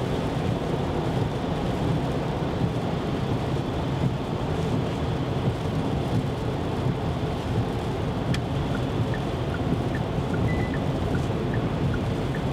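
Tyres roll with a steady low rumble on a wet road.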